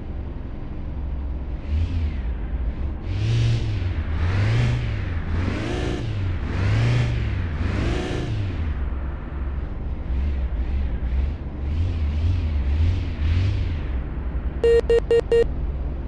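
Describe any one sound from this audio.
A car engine idles and revs up and down repeatedly.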